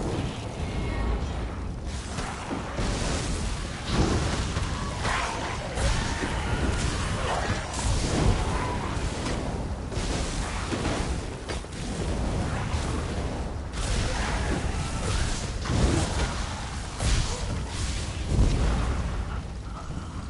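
Magic blasts crackle and boom in quick bursts.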